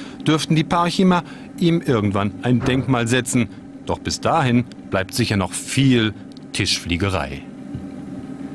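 A man speaks calmly and steadily.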